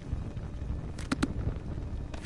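A small notebook snaps shut with a few quick paper taps.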